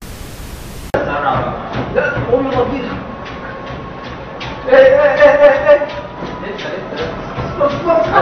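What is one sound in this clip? Feet thump rapidly on a treadmill belt.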